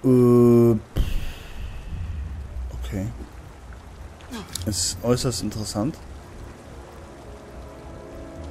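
Water pours down and splashes heavily.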